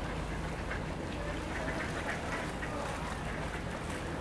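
Water from a small fountain splashes steadily.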